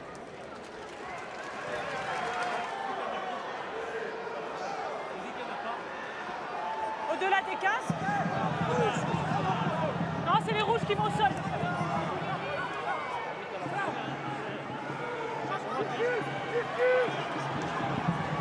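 Rugby players shout and call to each other across an open stadium pitch.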